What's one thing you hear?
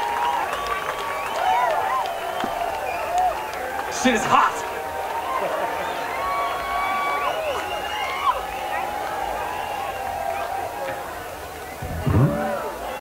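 A large crowd of people chatters and calls out.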